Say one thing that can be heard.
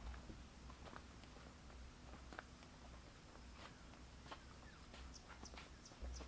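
Footsteps crunch on dry dirt outdoors.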